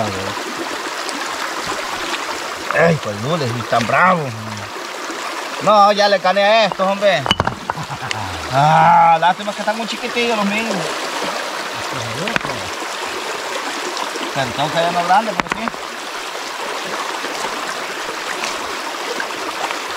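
A shallow stream flows and burbles over stones.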